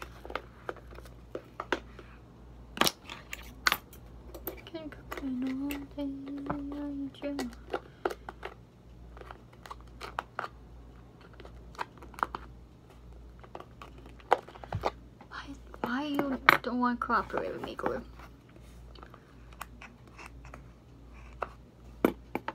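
A plastic bottle clicks and taps in hands.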